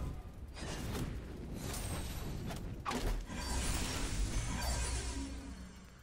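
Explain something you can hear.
Fiery magic blasts whoosh and crackle.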